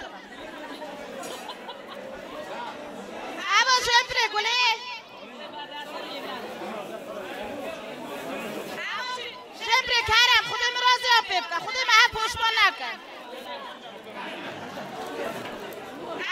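Plastic bags rustle.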